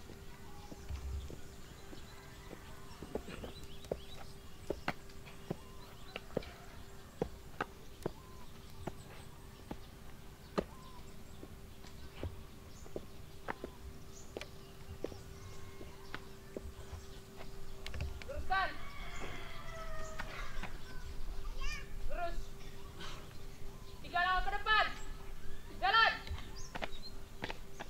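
Shoes stamp sharply on the ground in marching steps.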